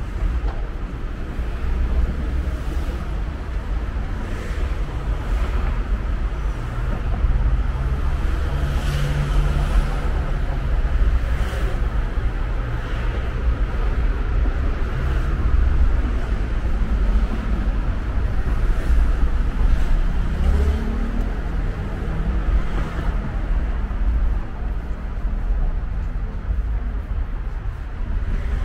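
Wind rumbles across the street outdoors.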